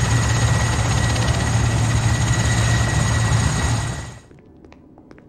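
A helicopter engine roars steadily, then cuts away.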